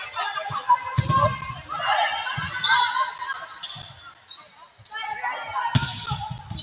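A volleyball is struck with sharp smacks in an echoing gym.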